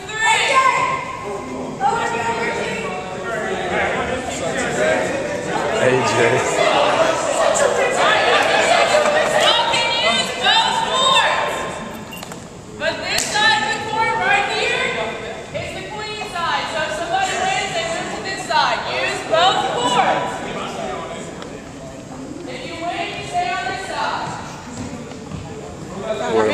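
A crowd of young men and women chatters and calls out, echoing in a large hall.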